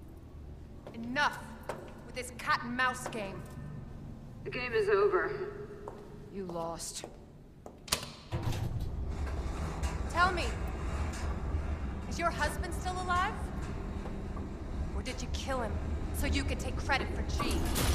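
A young woman speaks calmly and coolly.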